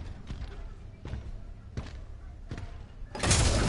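Single gunshots fire at a steady pace.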